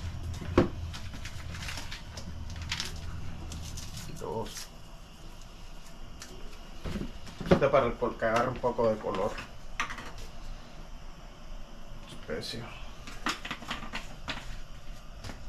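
Utensils clink and knock against pots and pans.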